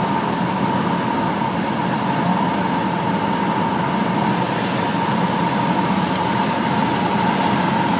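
Wind rushes past the plane.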